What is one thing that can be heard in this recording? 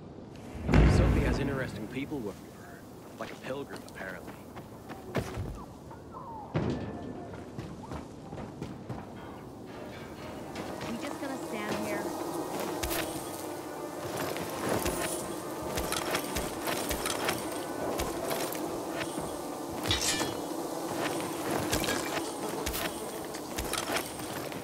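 Footsteps patter quickly over grass and rooftops.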